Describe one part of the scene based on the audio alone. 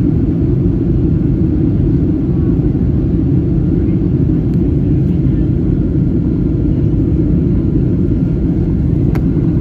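A jet engine roars steadily inside an airplane cabin in flight.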